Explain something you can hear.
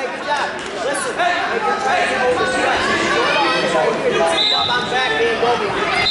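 A crowd of spectators chatters and shouts in a large echoing gym.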